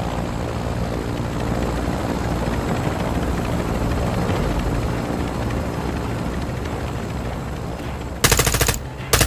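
A helicopter's engine drones steadily.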